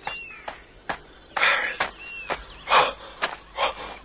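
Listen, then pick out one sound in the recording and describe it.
A man's footsteps run across hard ground.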